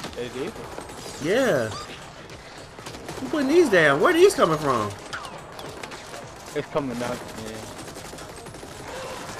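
Rapid gunfire rattles and crackles.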